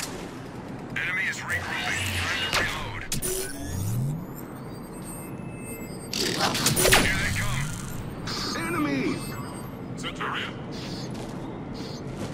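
Electric energy crackles and whooshes in bursts.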